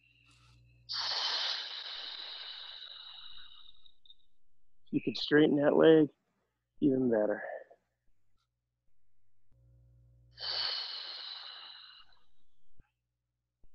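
A man exhales in long, hissing breaths.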